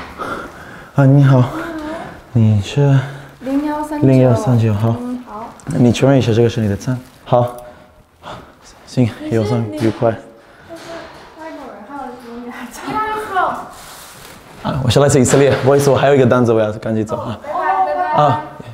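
A man talks calmly with a woman at close range.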